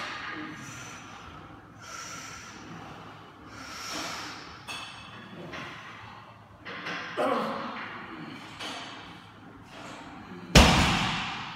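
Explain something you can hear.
A man breathes hard and sharply between lifts.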